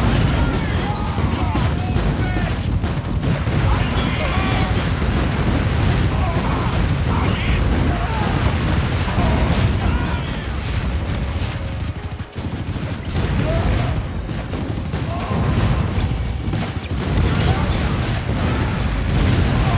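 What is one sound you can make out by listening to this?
Gunfire and explosions rumble and crackle continuously.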